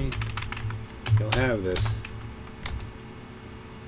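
Game menu blips sound as options are selected.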